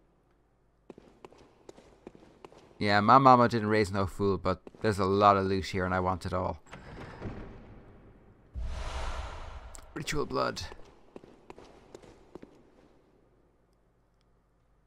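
Footsteps tap on a stone floor.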